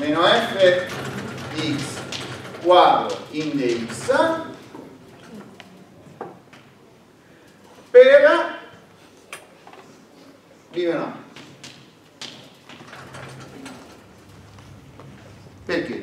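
A middle-aged man lectures aloud in an echoing room, speaking in bursts with pauses.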